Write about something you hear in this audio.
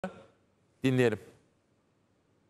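A middle-aged man speaks forcefully into a studio microphone.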